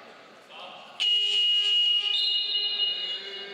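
A referee blows a long whistle in a large echoing hall.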